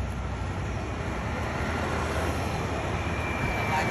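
A scooter engine hums as it rides by.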